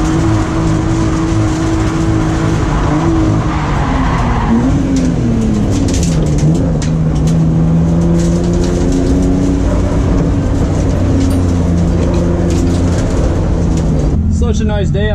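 Tyres squeal and scrub on the track.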